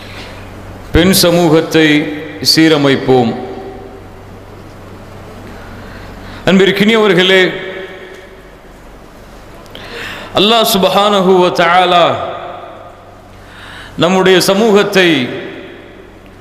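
A young man chants in a melodic voice through a microphone, in bursts with pauses.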